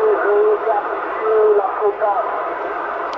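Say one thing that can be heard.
A man's voice speaks briefly through a crackly radio loudspeaker.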